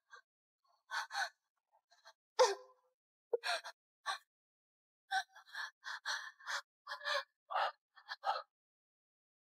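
A young woman speaks in short, distressed bursts.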